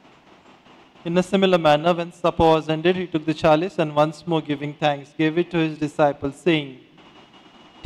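A middle-aged man sings a prayer slowly into a microphone.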